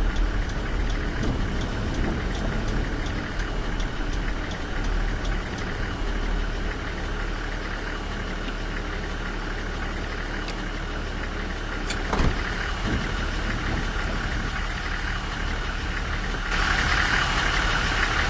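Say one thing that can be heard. A bus engine hums steadily with a low drone.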